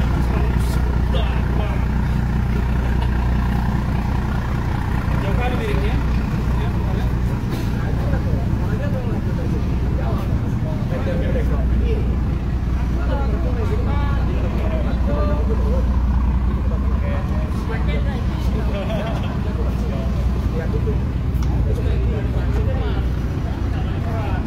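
A boat engine rumbles steadily close by.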